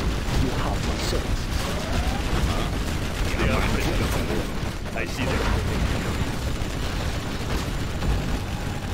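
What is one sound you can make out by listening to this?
Explosions boom and rumble in battle.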